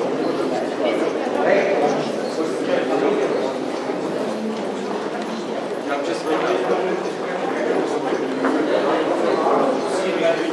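Footsteps shuffle along a hard floor.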